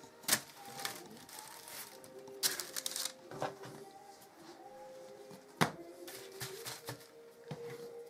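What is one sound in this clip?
Hands pat and press soft dough on rustling paper.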